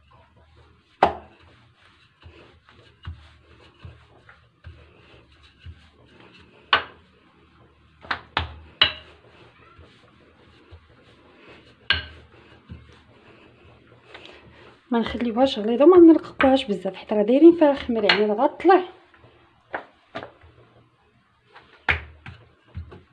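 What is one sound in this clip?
A wooden rolling pin rolls over dough and knocks against a hard countertop.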